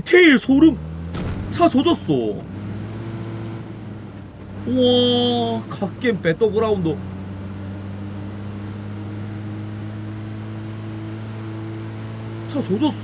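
A car engine starts and hums steadily as the vehicle drives.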